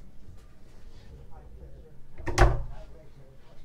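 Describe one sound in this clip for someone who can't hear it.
A wooden cupboard door clicks open.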